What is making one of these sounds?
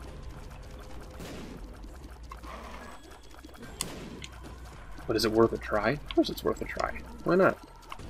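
Video game sound effects pop and splat in quick succession.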